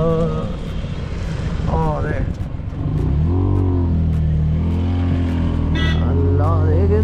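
An auto rickshaw engine putters and hums steadily, growing louder as it speeds up.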